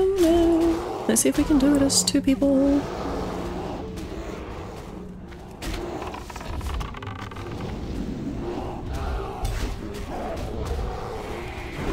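Weapon blows and spell effects clash in a fight.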